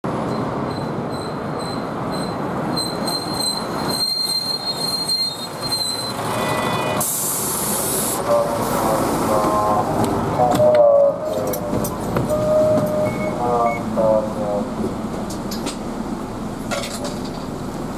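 A bus engine rumbles at idle nearby.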